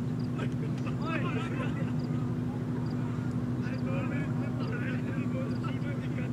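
Men shout across an open field outdoors.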